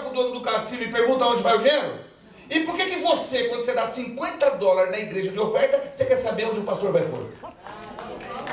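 A man speaks with animation through a microphone, heard over loudspeakers in a hall.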